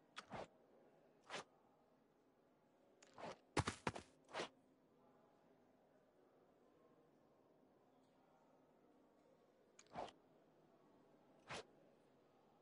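Short electronic blips sound now and then.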